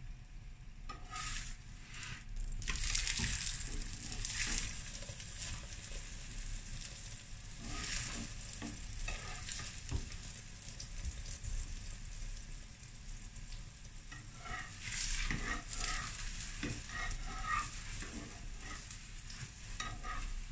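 Batter sizzles on a hot griddle.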